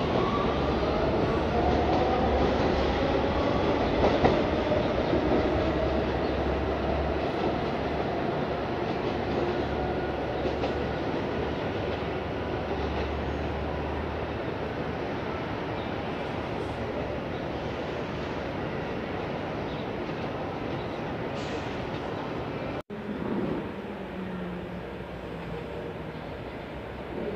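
A subway train rumbles and clatters along the rails.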